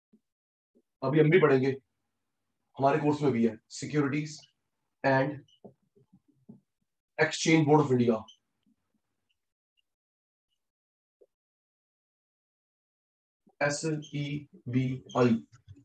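A man speaks calmly through a close microphone, in short phrases with pauses.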